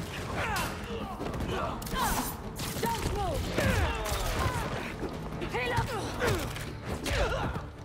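Punches and kicks land with heavy thuds in a close fight.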